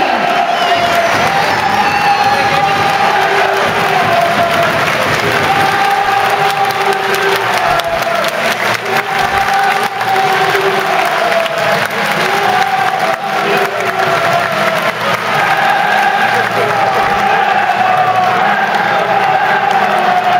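A crowd cheers in an open stadium.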